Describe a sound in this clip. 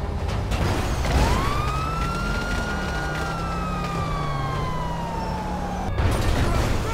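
A police siren wails and slowly falls in pitch.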